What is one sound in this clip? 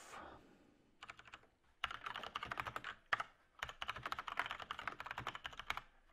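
Fast typing clatters on a keyboard.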